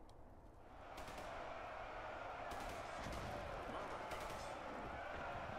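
Blasts crack and boom in quick bursts.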